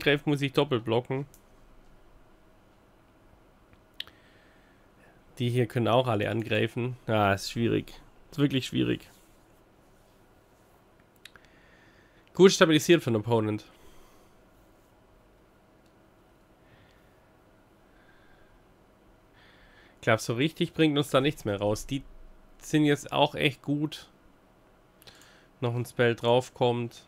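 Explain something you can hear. A man talks calmly into a close microphone, in bursts with pauses.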